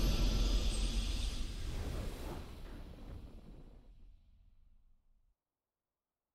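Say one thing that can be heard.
A triumphant game victory fanfare rings out and fades away.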